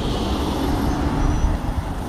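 A minibus drives past.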